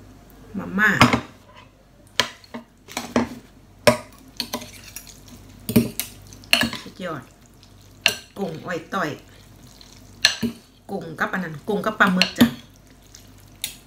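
Metal forks clink against a glass bowl.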